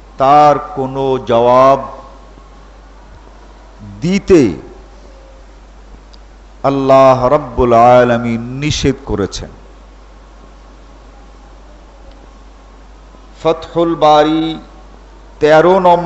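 An elderly man speaks calmly in bursts with pauses, close to a microphone.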